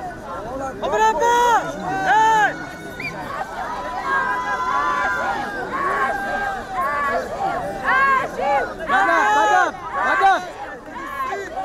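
A man calls out loudly nearby.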